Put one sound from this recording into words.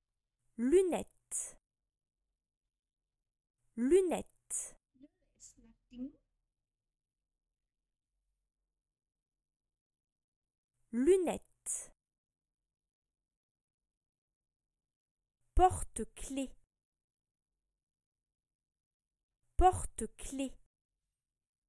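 A young woman repeats short words aloud, close to a microphone.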